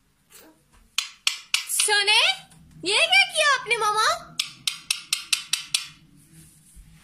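A metal cap rattles and clicks in a parrot's beak.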